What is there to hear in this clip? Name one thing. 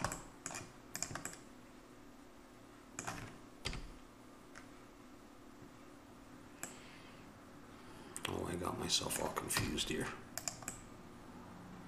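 Computer keys and a mouse click sharply.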